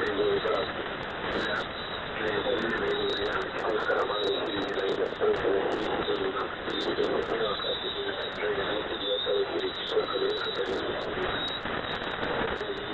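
A warbling, wavering tone drifts through radio static.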